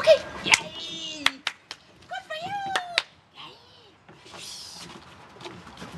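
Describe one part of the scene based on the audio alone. A dog's paws patter and scrape on a wooden deck.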